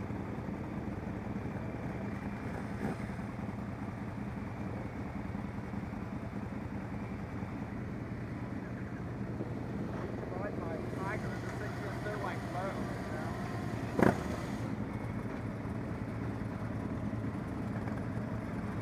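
Motorcycle engines idle and rumble nearby.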